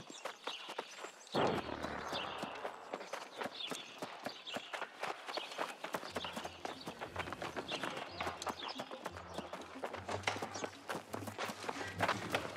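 Footsteps run quickly over dirt and stone.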